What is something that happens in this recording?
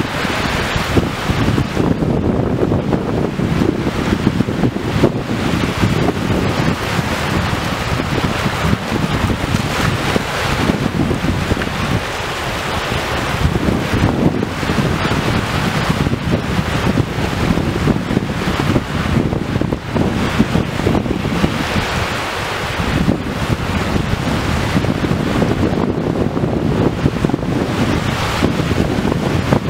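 Wind blows outdoors, rumbling across the microphone.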